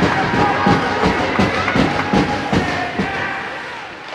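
A crowd of spectators cheers and shouts in an echoing rink.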